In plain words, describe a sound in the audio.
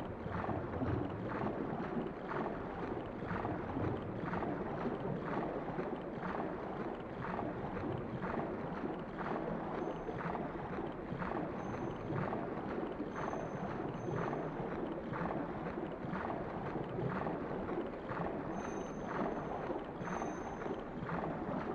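Water swishes in a steady rhythm of swimming strokes.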